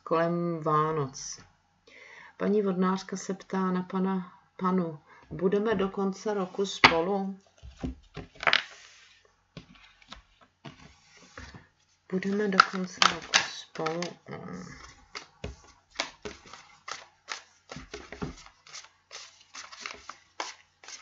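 Playing cards riffle and flick as they are shuffled.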